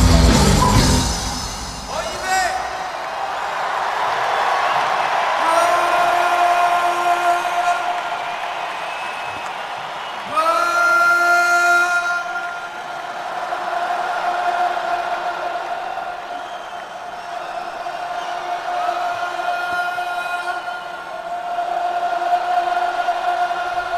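A huge crowd cheers and sings along.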